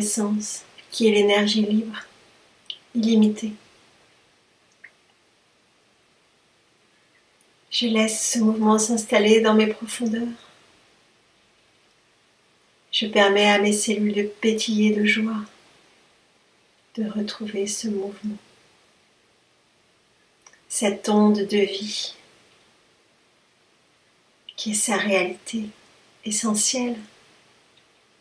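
A middle-aged woman speaks calmly close to the microphone, in short phrases with pauses.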